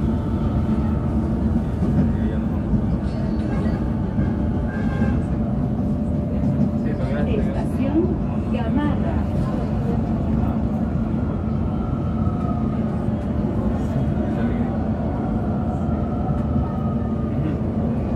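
A city hums steadily in the distance.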